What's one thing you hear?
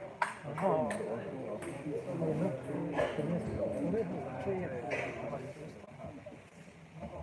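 Men talk and call out in a large echoing hall.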